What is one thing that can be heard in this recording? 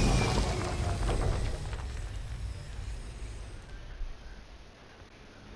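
Stone crumbles and rumbles as a tower collapses.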